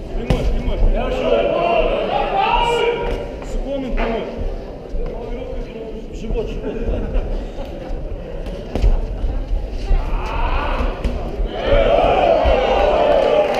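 A crowd shouts and cheers in a large hall.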